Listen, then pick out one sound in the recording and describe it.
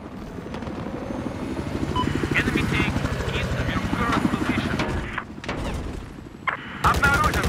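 A helicopter's rotor thumps steadily in a fast beat.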